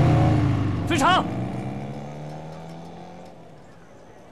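A young man shouts, and the shout echoes away outdoors.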